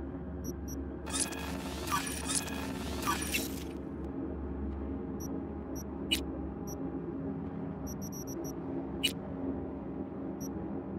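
Short electronic menu blips tick as items are selected.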